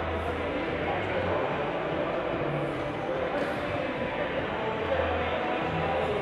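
Darts thud into an electronic dartboard.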